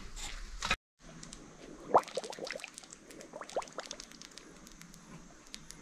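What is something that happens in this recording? Water drips into a shallow puddle.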